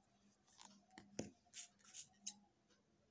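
A crochet hook and a second tool click as they are set down on a hard surface.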